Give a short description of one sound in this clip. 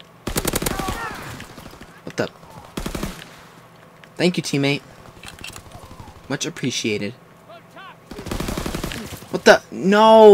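Gunshots fire in quick bursts.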